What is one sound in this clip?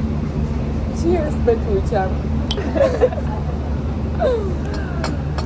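Young women laugh and talk close by.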